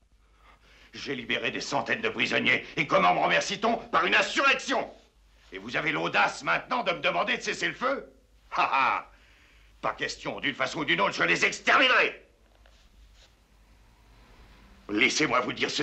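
An older man speaks firmly nearby.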